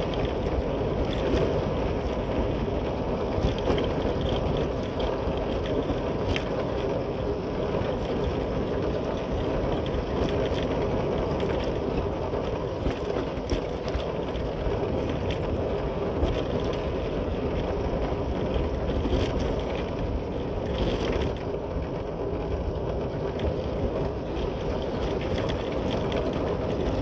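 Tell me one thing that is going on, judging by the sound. Tyres crunch and rattle over a rough dirt road.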